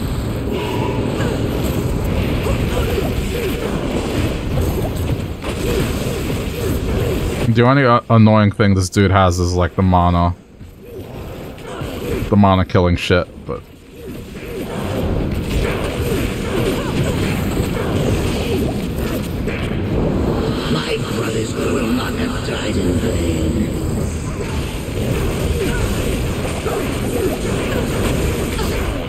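Magic spells crash and crackle in a fight.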